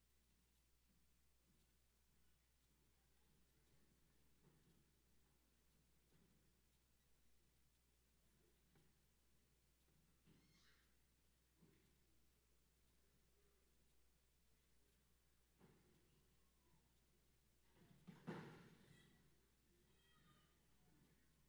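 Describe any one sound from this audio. A large crowd murmurs quietly in a big echoing hall.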